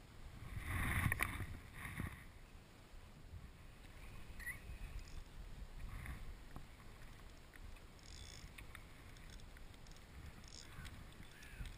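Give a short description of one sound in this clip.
Wind rumbles across an open microphone outdoors.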